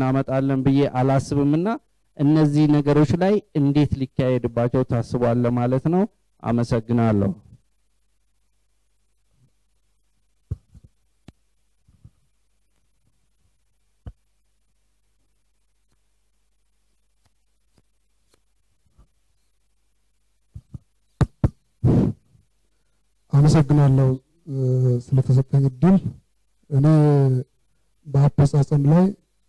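A man speaks steadily into a microphone, heard through loudspeakers in a large hall.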